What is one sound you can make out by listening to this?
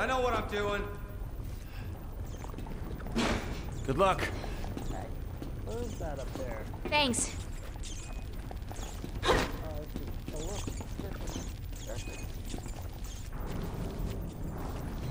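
A young man talks calmly into a microphone close by.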